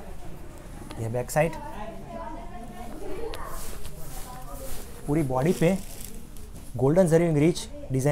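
Silk fabric rustles under hands.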